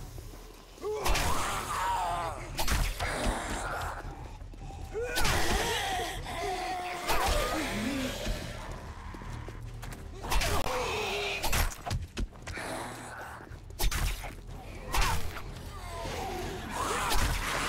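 Zombies growl and snarl up close.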